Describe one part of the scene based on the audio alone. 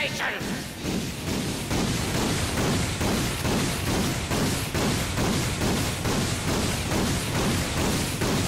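Explosions burst and rumble.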